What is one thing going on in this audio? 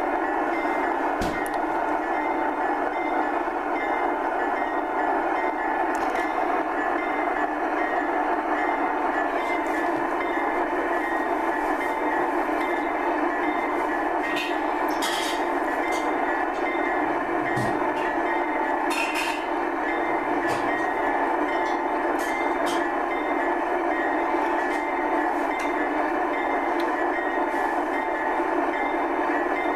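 A diesel locomotive engine rumbles steadily as a train slowly approaches.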